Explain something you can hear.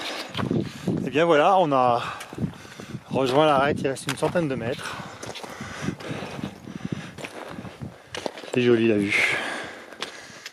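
A man speaks close to the microphone, slightly out of breath.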